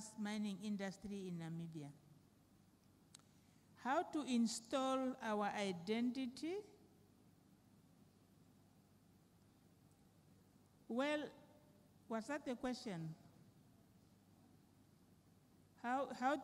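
A woman reads aloud into a microphone in a large room, in short phrases with pauses.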